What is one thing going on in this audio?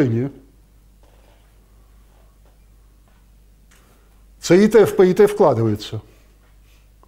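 An older man lectures calmly, pausing between phrases.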